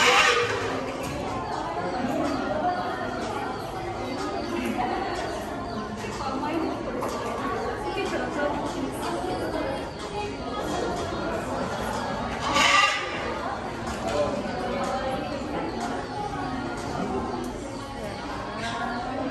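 A crowd of adults and children chatter indoors in an echoing room.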